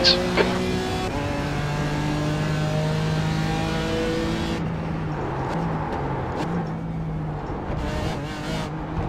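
A racing car engine roars steadily, dropping in pitch as the car brakes and shifts down.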